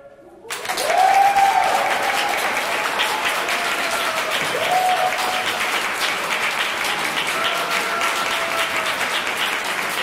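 People in an audience cheer and whoop.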